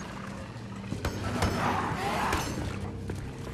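A creature snarls and growls close by.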